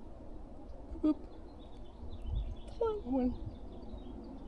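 A young child speaks in a high voice.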